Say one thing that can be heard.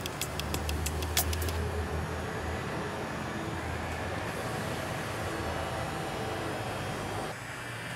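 A robot's small motors whir softly as its face moves.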